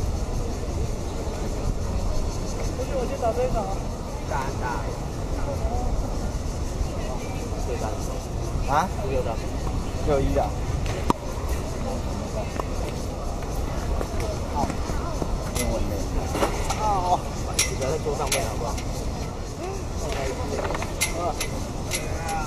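Tennis rackets hit a ball back and forth with sharp pops.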